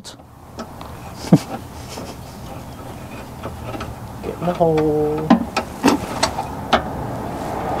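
Metal parts clink under a vehicle.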